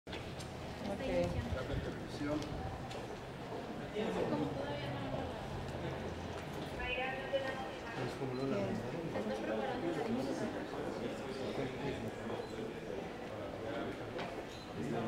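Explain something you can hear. A woman speaks steadily into a microphone, reading out.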